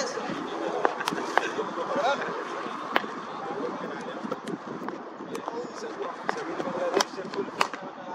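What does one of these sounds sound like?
Footsteps pad on a hard outdoor surface.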